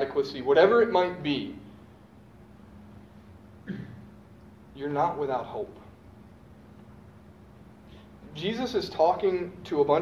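A young man speaks calmly in bursts, in a room with a slight echo.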